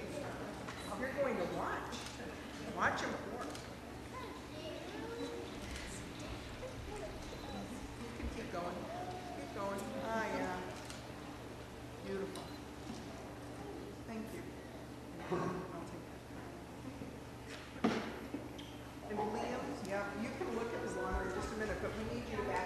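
A man speaks calmly in a large echoing hall.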